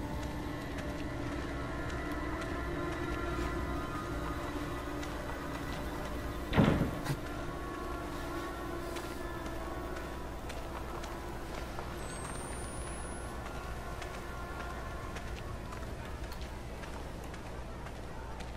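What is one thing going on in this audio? Footsteps crunch slowly on dirt and gravel.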